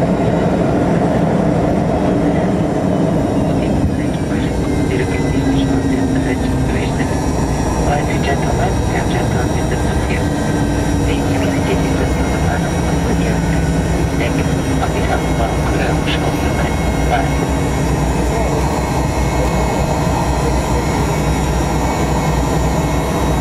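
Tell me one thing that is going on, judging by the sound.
Aircraft engines roar loudly and steadily from inside the cabin.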